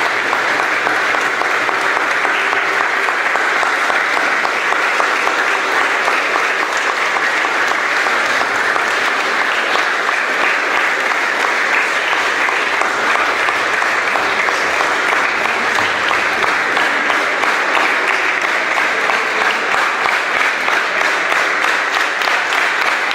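A crowd applauds and cheers loudly in an echoing hall.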